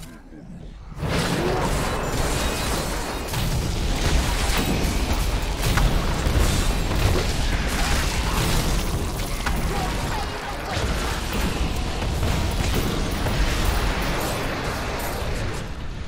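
Spells and blasts crash and boom loudly in a fight.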